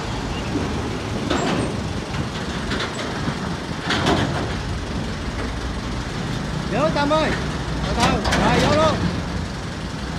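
Metal ramps clank as a tractor climbs onto a truck.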